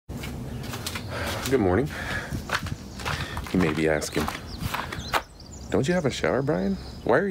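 A middle-aged man talks calmly and close up, outdoors.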